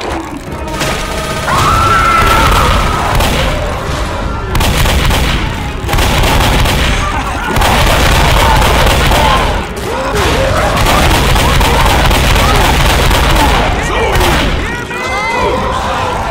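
A large monster roars and growls.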